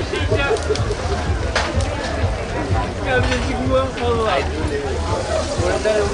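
Tongs clatter against meat on the grill.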